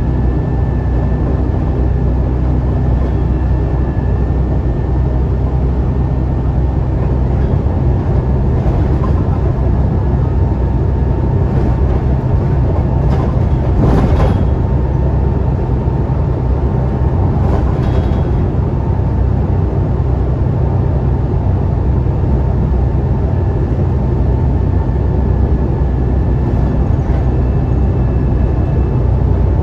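A bus interior rattles and creaks.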